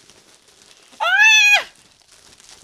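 A young woman shrieks in surprise.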